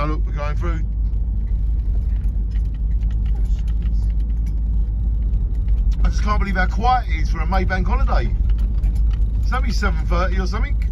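A car engine rumbles low and steady as the car drives along a road.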